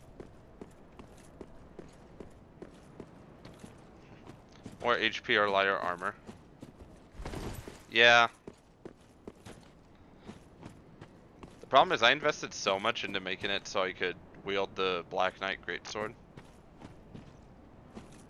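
Armoured footsteps thud quickly on stone.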